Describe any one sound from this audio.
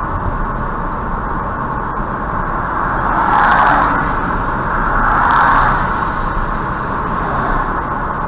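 A car's tyres roar steadily on a highway, swelling louder for a few seconds.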